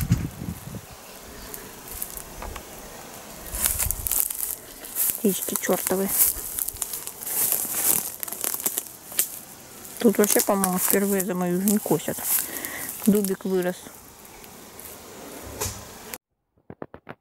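Leaves rustle in a breeze outdoors.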